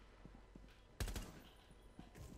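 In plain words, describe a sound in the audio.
A rifle fires a short burst of shots.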